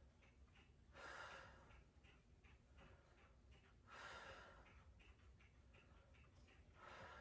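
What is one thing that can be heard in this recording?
A woman breathes out deeply and slowly, close by.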